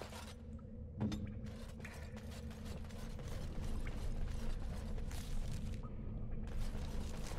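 Footsteps crunch on a stone floor.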